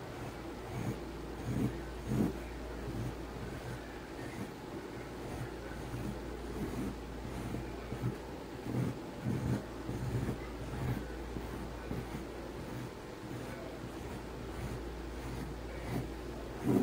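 A pencil scratches lightly across paper.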